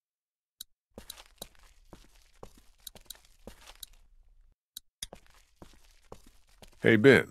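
Footsteps scuff on hard ground.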